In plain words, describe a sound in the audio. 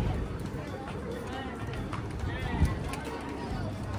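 Footsteps pass close by on a paved walkway.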